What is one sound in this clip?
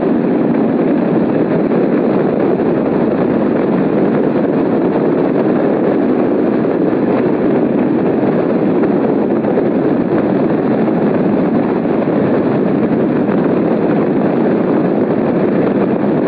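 Strong wind rushes and roars steadily past, as in flight high in the open air.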